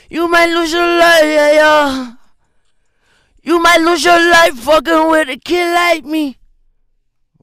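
A man sings loudly and close by, in short bursts.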